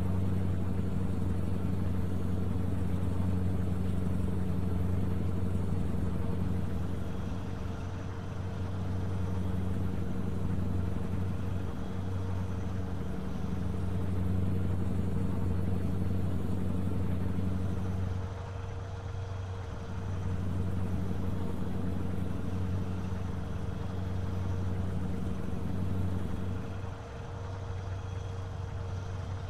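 Tyres roll along a motorway with a constant rumble.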